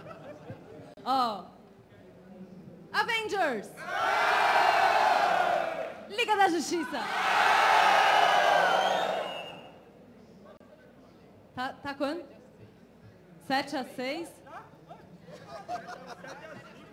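A young woman speaks with animation into a microphone over loudspeakers in a large hall.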